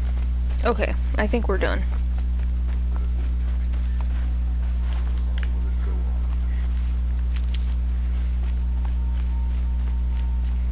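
Footsteps crunch softly on rough ground.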